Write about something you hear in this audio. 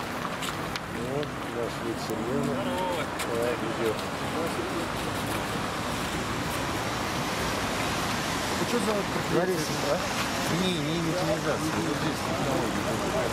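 Men talk with animation nearby, outdoors.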